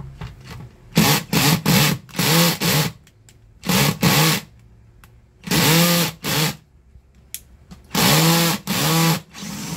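A cordless drill whirs in short bursts, speeding up and slowing down.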